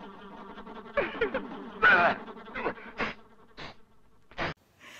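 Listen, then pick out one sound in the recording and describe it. An elderly man shouts in alarm.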